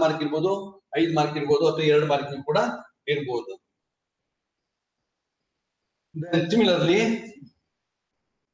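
A middle-aged man lectures calmly through a microphone, in short bursts with long pauses.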